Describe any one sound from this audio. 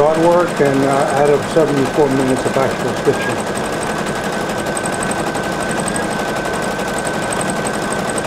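An embroidery machine hums and stitches with a fast, steady ticking.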